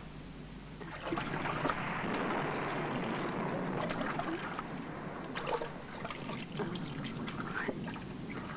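Bath water splashes and trickles gently.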